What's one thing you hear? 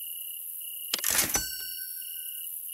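A bright coin chime rings once.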